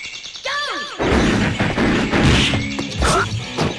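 Video game fighters land loud hits and impacts.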